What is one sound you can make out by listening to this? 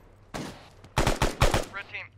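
A rifle fires several quick shots close by.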